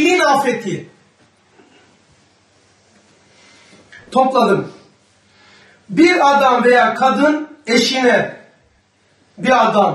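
An elderly man speaks calmly into a microphone in bursts, with pauses between phrases.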